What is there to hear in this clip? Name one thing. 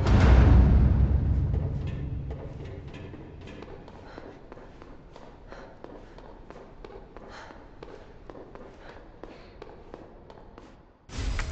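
Footsteps in high heels click on a concrete floor.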